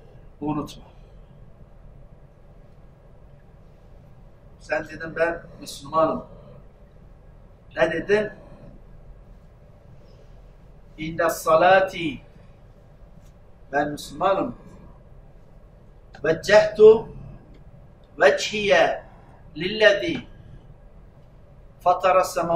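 An elderly man speaks with emphasis into a microphone, in short bursts with pauses.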